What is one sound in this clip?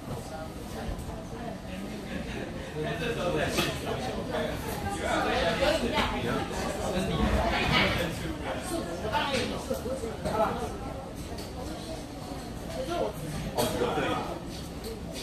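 A crowd of people chatter nearby in a busy open-air space.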